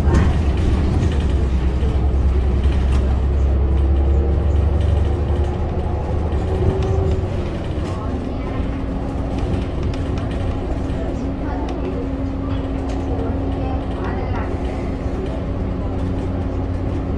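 A bus engine drones and rattles steadily from inside the cabin.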